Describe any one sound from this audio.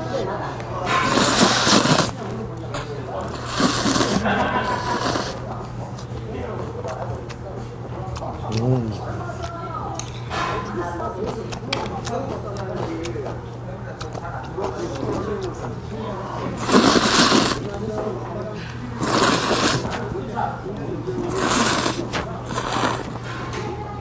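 A man loudly slurps noodles in bursts.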